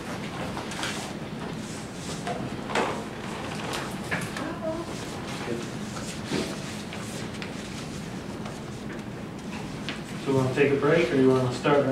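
Footsteps shuffle across a floor.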